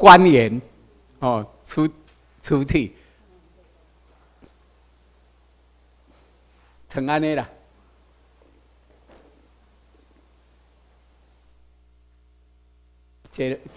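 An elderly man speaks through a microphone over loudspeakers in a large room, pausing between phrases.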